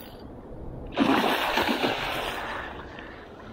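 A large fish splashes loudly at the water's surface.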